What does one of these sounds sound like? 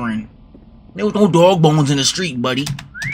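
A young man gasps and exclaims in alarm.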